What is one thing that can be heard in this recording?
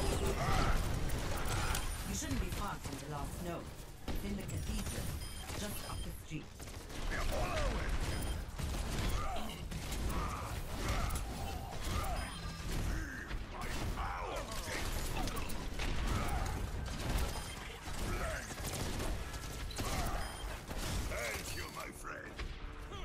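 Energy guns fire in rapid bursts.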